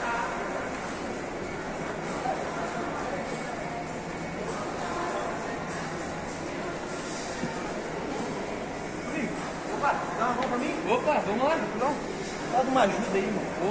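A crowd murmurs in the background of a large echoing hall.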